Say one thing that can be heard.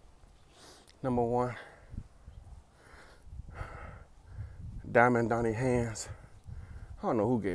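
A man speaks close up in short bursts, with long pauses between them.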